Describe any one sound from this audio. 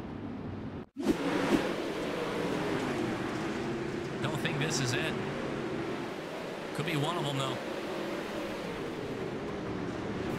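Several racing engines roar loudly as cars speed past.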